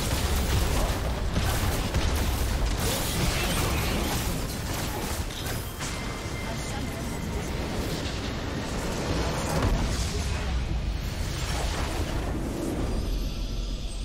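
Spells and weapons clash loudly in a chaotic game battle.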